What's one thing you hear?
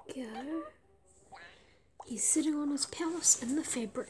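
A bubble pops with a soft plop.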